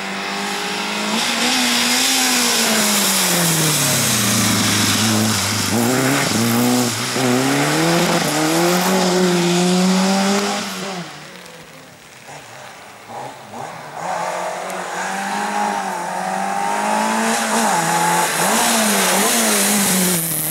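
Tyres hiss and spray on a wet road.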